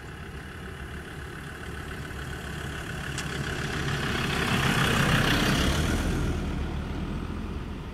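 A car engine rumbles as the car drives slowly past close by.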